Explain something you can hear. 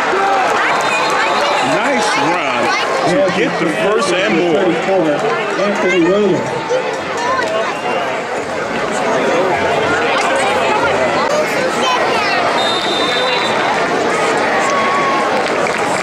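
A crowd chatters and cheers in the stands.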